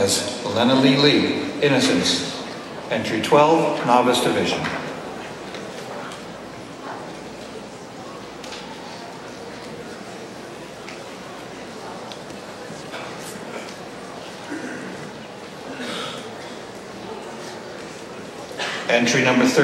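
An elderly man speaks theatrically into a microphone in a large hall.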